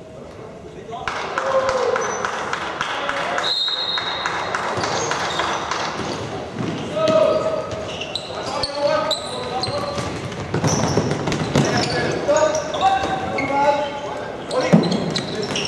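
Young men shout to each other across an echoing hall.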